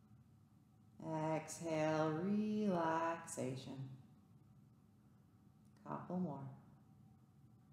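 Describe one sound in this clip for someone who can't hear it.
A woman speaks softly and calmly nearby.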